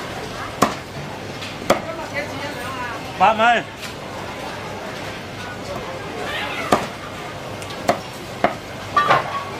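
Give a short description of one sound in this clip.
A knife chops sharply against a cutting board.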